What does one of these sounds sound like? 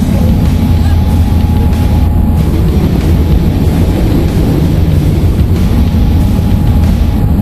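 A plane's engine roars loudly and steadily, close by.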